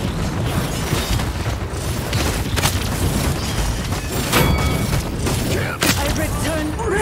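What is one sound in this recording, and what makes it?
Magic energy blasts whoosh and sizzle.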